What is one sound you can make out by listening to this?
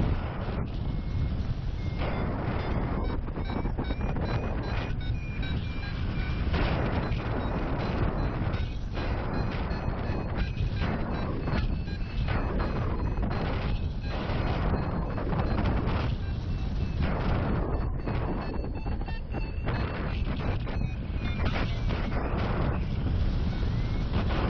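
Strong wind rushes and buffets loudly past the microphone.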